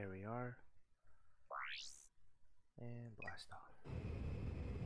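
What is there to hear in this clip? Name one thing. Short electronic menu blips and chimes sound.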